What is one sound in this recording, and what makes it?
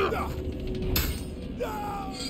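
Swords clash with a sharp metallic ring.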